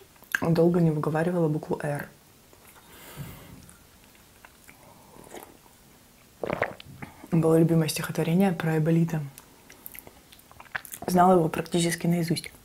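A young woman speaks softly and closely into a microphone.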